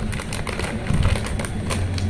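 A plastic snack packet crinkles as it is torn open.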